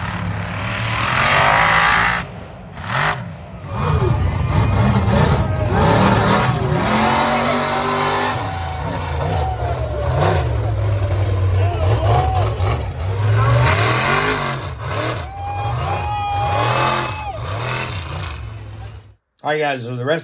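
Tyres churn through mud.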